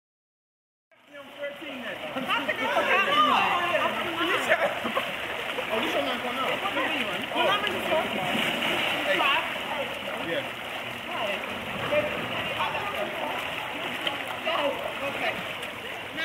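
Men and women chatter and call out around the water.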